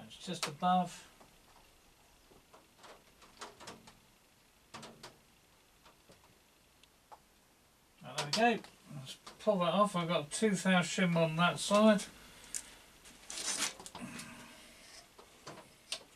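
Small metal tools clink and tap on a workbench.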